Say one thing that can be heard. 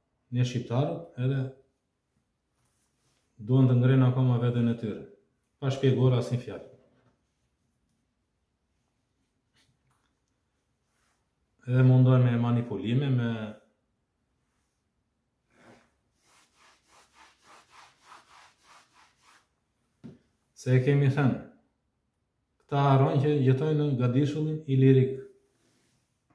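An older man speaks calmly and close by, in short bursts with pauses.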